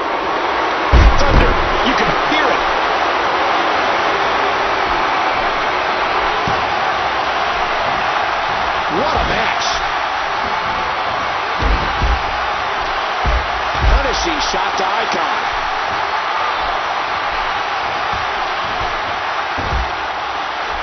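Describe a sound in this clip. Heavy thuds of bodies hitting the mat and punches landing ring out now and then.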